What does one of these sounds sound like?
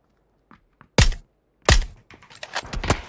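A rifle fires two loud, sharp shots.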